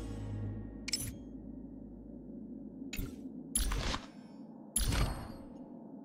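Short whooshing menu sounds play as a game menu changes.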